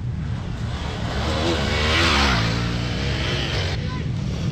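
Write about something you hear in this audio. A dirt bike engine roars loudly as the bike speeds past close by.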